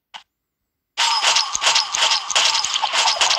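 Loud game explosions and impact effects crash together.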